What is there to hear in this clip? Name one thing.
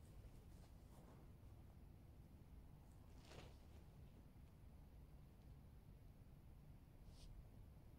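Fabric rustles as a man crawls into a tent.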